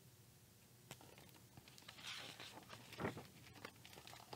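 A paper page rustles as it is turned.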